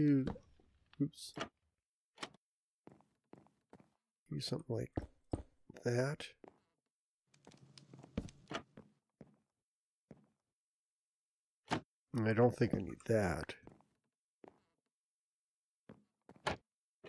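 Wooden blocks are set down with short, dull knocks.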